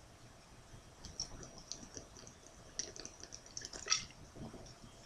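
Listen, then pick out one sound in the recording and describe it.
A young man gulps a drink from a bottle close by.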